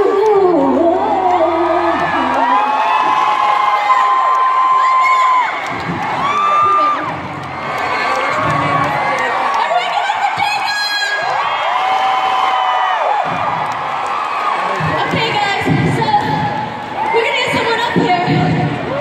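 Loud pop music plays through big speakers in a large echoing hall.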